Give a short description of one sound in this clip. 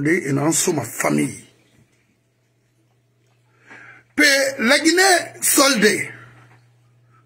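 A middle-aged man speaks with animation, close to the microphone.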